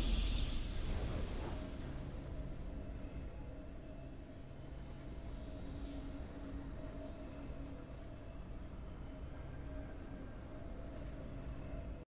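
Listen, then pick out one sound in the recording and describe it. A triumphant victory tune plays softly.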